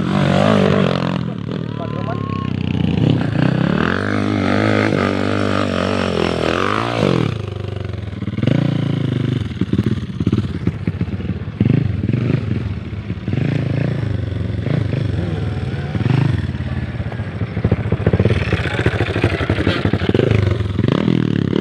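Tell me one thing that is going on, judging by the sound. A dirt bike engine revs hard and whines up and down.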